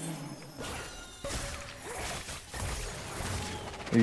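Magic blasts and hits crackle in a fight.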